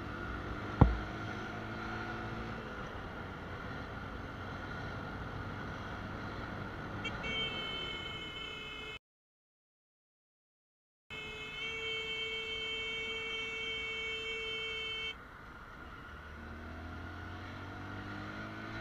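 A motorcycle engine hums steadily and revs up as it rides.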